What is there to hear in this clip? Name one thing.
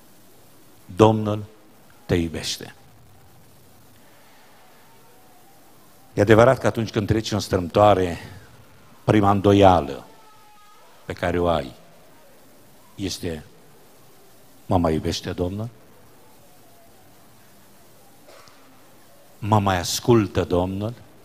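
A middle-aged man speaks with emphasis through a microphone, in short bursts with pauses, in a reverberant room.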